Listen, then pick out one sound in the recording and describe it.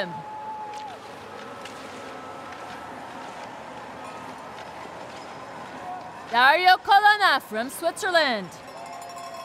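Skis swish and scrape over snow.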